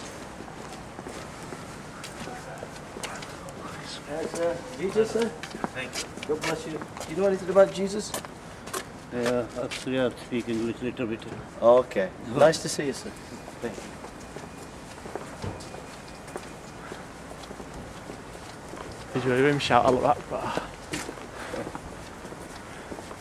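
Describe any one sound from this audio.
Footsteps scuff on a pavement.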